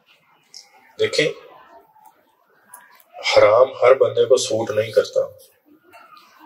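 A middle-aged man speaks with animation into a microphone, heard through loudspeakers in a room.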